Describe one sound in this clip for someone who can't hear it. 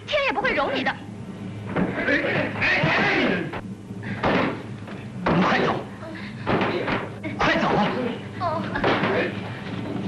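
A young woman speaks sharply and urgently.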